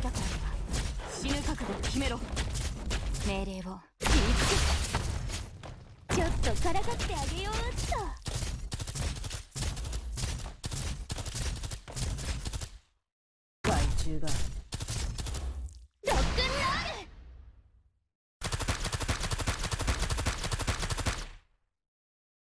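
Quick game sound effects of weapons striking and firing clatter in rapid bursts.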